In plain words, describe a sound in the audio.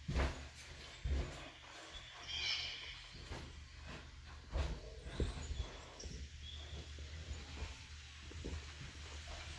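Wooden walls and ramps are built with quick knocking thuds.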